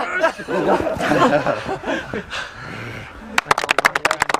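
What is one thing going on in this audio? Men laugh.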